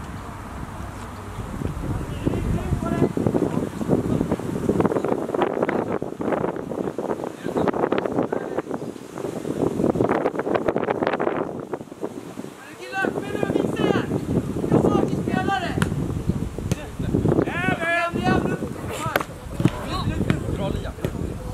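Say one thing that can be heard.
Young players shout and call to each other outdoors.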